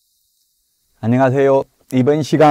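A middle-aged man speaks calmly and clearly into a microphone, close by.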